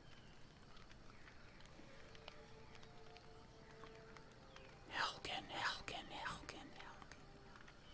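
A wood campfire crackles.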